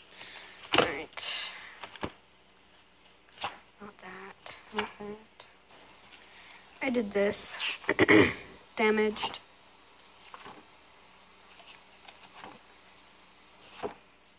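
Pages of a spiral-bound sketchbook are turned over.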